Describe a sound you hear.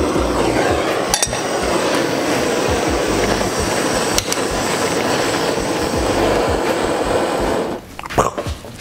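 A handheld smoke gun whirs.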